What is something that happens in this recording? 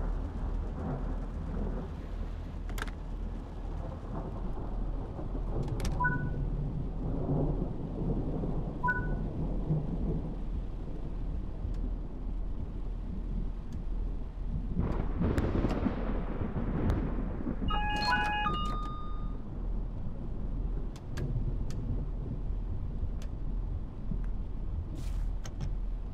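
Rain patters steadily on a windscreen.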